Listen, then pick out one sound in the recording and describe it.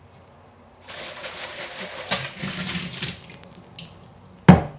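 Water splashes into a container.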